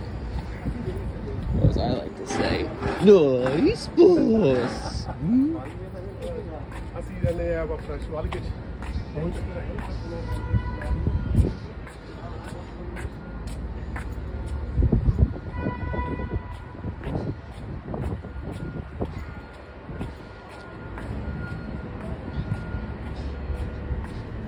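Footsteps tread steadily on hard pavement.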